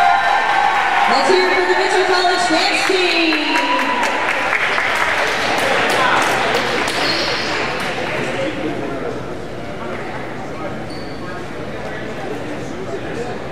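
A crowd cheers and chatters in a large echoing gym, then quiets down.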